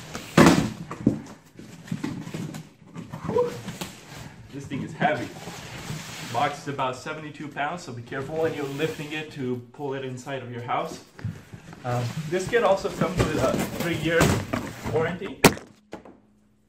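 Cardboard boxes rustle and scrape as they are handled.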